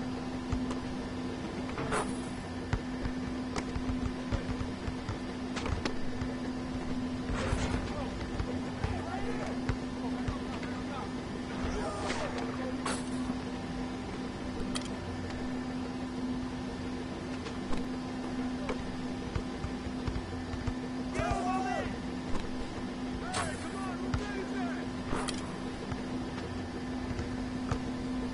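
A basketball bounces on a court.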